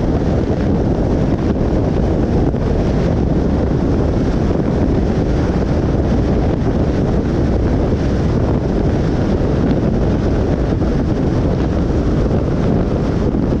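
Tyres roll steadily over the road at speed.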